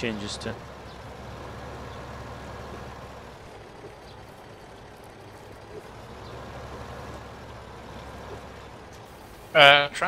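A tractor engine hums steadily at idle.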